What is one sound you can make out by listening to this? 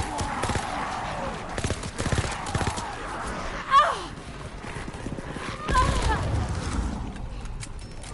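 A submachine gun fires rapid bursts of shots.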